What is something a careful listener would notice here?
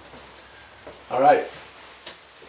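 An elderly man speaks briefly, close by.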